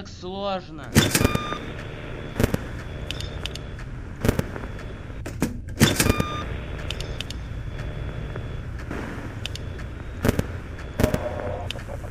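Sharp clicks sound now and then.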